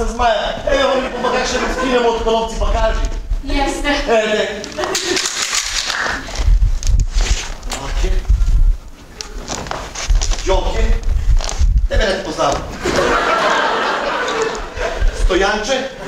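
A young man speaks loudly and with animation in an echoing hall.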